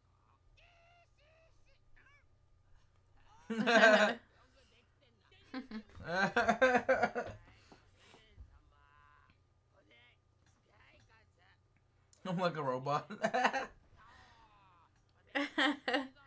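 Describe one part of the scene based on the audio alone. A young woman giggles softly close by.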